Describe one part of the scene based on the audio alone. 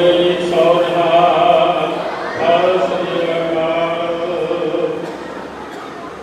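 A man chants in a steady sung voice through a loudspeaker.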